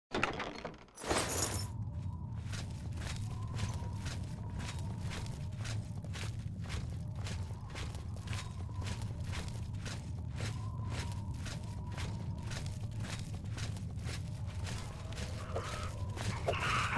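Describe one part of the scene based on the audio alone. Footsteps tread steadily on stone in an echoing cave.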